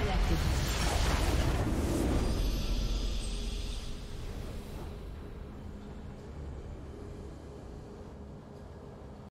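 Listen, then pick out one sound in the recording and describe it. A triumphant game fanfare rings out and fades.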